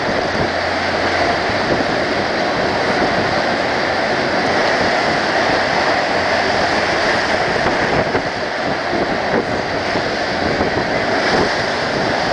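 Strong wind roars and gusts.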